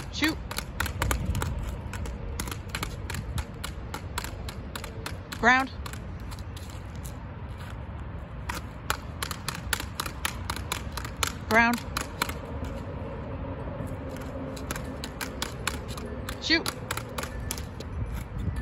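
A hockey stick taps a ball rapidly on asphalt outdoors.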